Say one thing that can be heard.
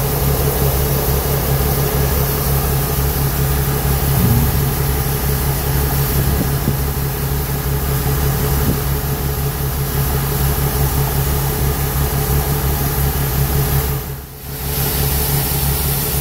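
Shelled corn pours from a combine's unloading auger into a grain cart with a steady rushing hiss.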